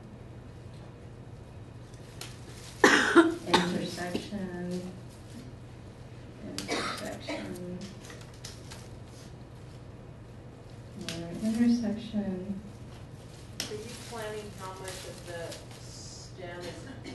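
Leafy branches rustle as they are handled.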